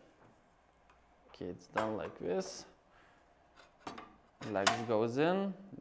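A metal frame clicks and rattles as it is unfolded.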